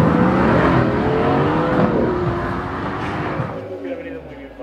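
A sports car engine roars loudly as the car accelerates away.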